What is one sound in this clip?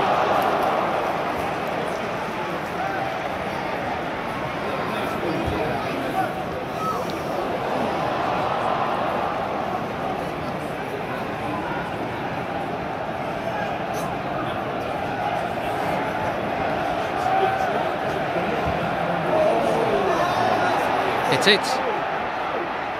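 A large stadium crowd murmurs and chants in a large open stadium.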